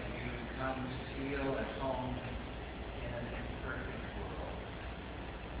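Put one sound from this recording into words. A man speaks calmly at a distance in a room that echoes a little.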